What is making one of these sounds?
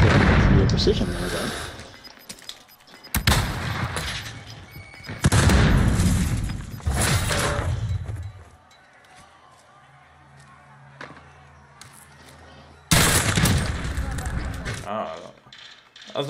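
Rifle shots crack in loud bursts, echoing off walls.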